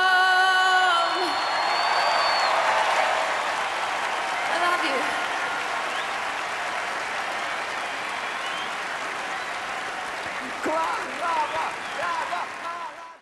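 A large crowd cheers and applauds in a big echoing arena.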